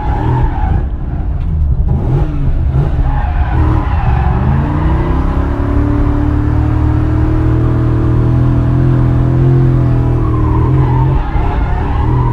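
A car engine drones from inside the car, rising in pitch and then holding steady.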